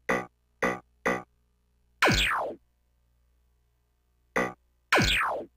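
Short electronic menu beeps sound several times.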